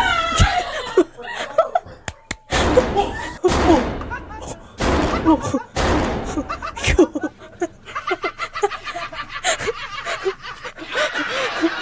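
A young woman laughs loudly close to a microphone.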